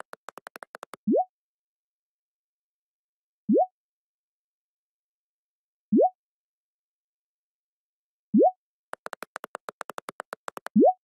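A phone gives a short rising chime as each message arrives.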